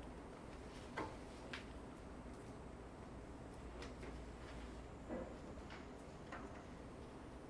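Pages of a book rustle softly in a quiet room.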